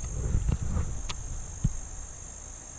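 A fishing reel clicks.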